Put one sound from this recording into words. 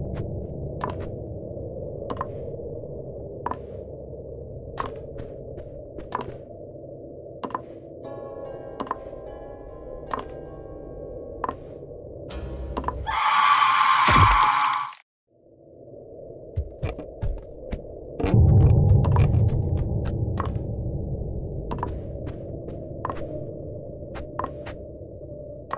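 Footsteps thud slowly on wooden boards.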